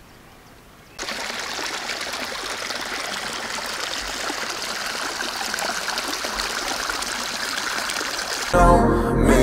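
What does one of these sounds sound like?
Water gurgles and rushes along a narrow channel close by.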